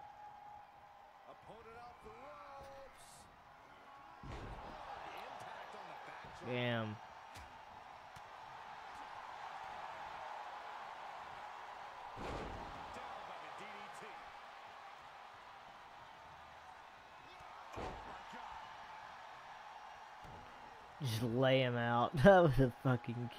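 A crowd cheers steadily.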